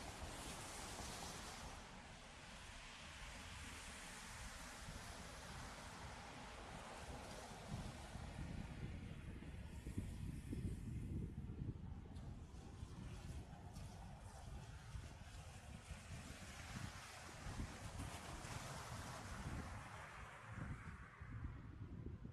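Footsteps tread steadily on pavement.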